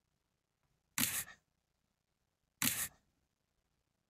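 A playing card slaps down onto a table.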